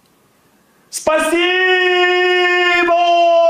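An older man sings a long, steady note into a microphone.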